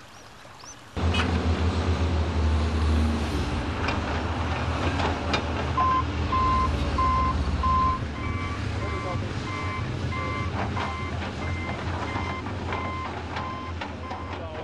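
A heavy loader's diesel engine rumbles steadily.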